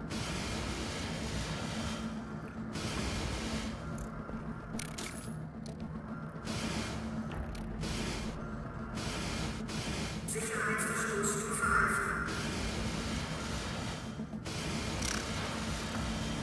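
A cutting torch hisses and roars against metal.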